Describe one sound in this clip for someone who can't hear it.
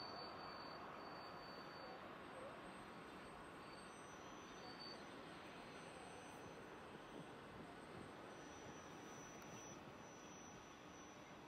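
A train rumbles steadily along the tracks in the distance.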